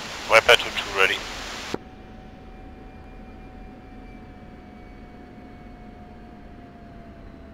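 A jet engine whines steadily at idle.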